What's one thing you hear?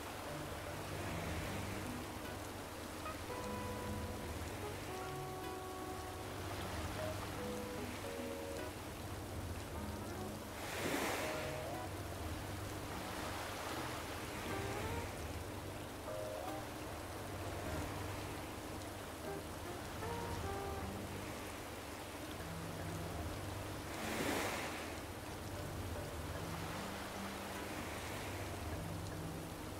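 Waves lap gently against the shore.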